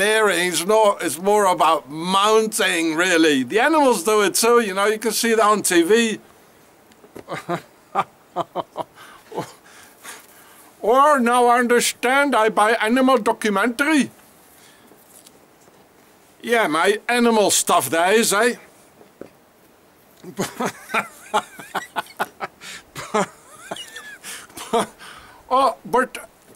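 A middle-aged man talks with animation close to the microphone, in bursts with pauses.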